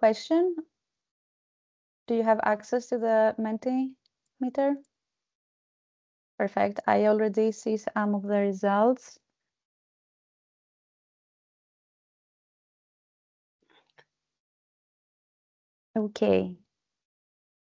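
A young woman speaks calmly through an online call, in short bursts with pauses.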